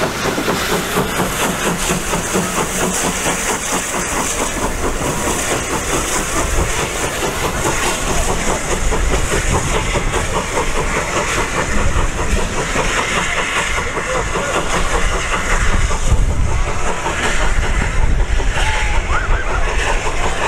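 A steam locomotive chuffs rhythmically as it pulls away and fades into the distance.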